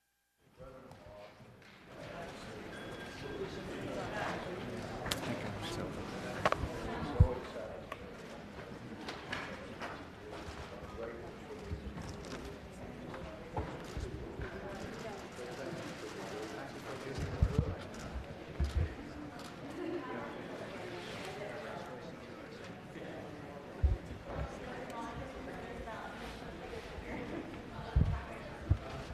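A crowd of men and women murmur and chatter in a large room.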